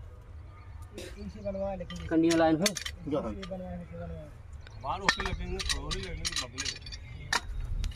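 Men talk loudly nearby outdoors.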